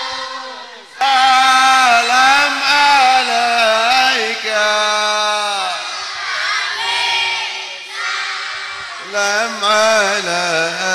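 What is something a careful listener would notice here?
A man sings with feeling through a microphone and loudspeakers.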